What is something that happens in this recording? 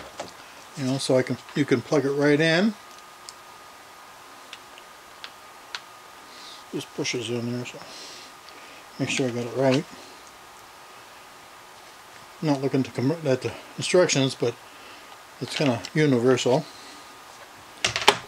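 Hard plastic parts click and knock together.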